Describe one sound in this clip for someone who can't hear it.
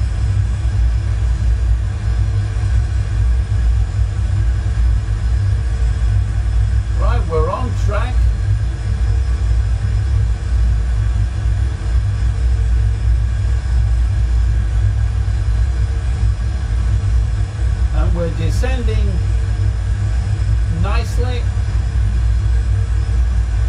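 A jet engine drones low and steady.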